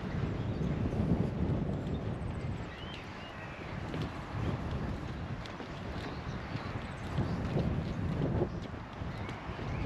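Wind blows in gusts against the microphone outdoors.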